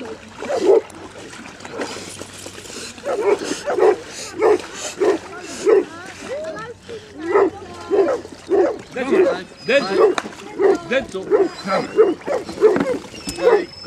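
Water sloshes and laps as a large dog swims.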